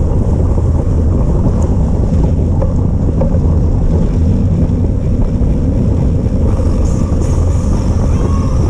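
Bicycle tyres roll and crunch over a wet, gritty path.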